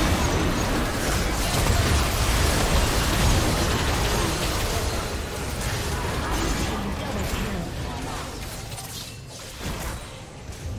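Magic spells blast and crackle in a fierce battle.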